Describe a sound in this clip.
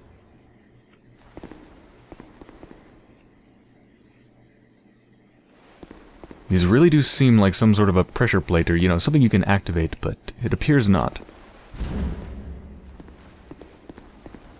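Armoured footsteps crunch on a stone floor.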